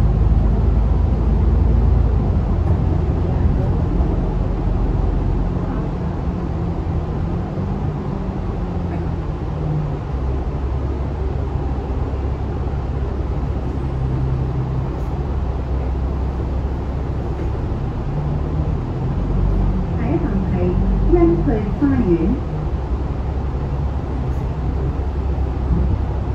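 The bus cabin rattles and creaks as it moves.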